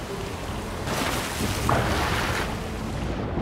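A man splashes into water.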